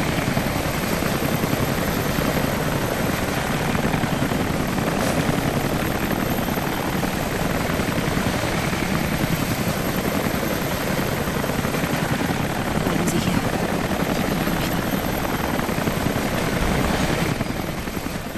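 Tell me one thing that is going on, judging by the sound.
A helicopter roars overhead.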